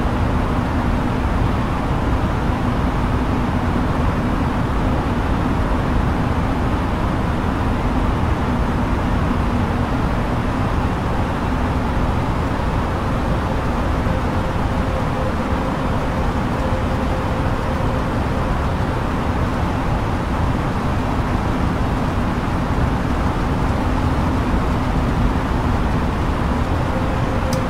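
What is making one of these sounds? Jet airliner engines and rushing air drone steadily from inside the cockpit in flight.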